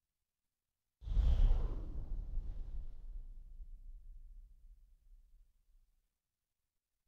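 A game character bursts apart with a deep rumbling whoosh that slowly fades.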